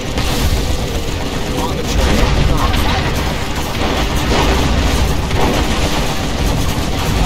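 Rockets whoosh through the air.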